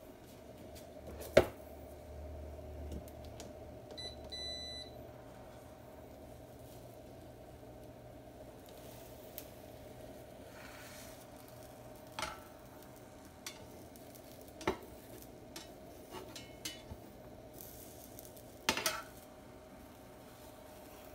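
Egg sizzles softly in a hot pan.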